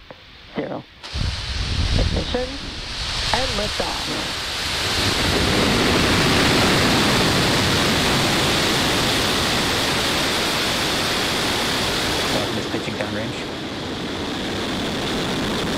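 A rocket engine ignites and roars loudly with a deep, steady rumble.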